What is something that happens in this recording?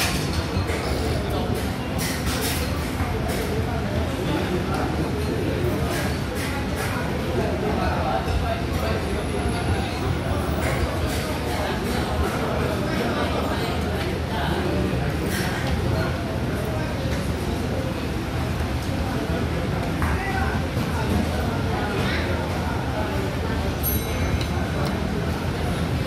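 A crowd chatters in a busy, echoing hall.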